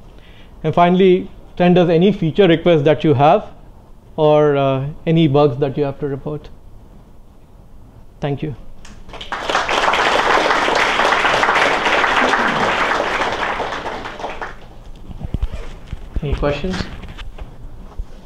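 A man speaks calmly through a microphone in a large room.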